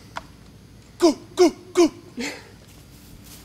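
A man shouts several short cries outdoors.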